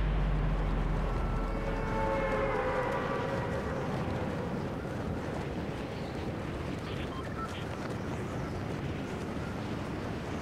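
Wind rushes steadily past during a fast freefall.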